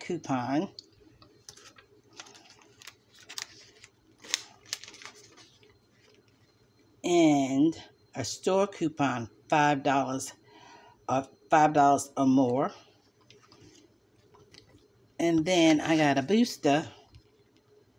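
Paper coupons rustle as they are handled.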